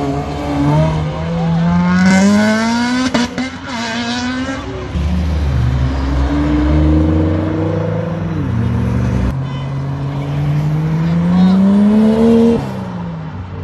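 Sports car engines rev hard and roar as they accelerate away.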